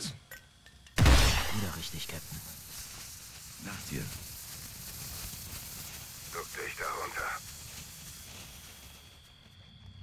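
A smoke grenade hisses steadily.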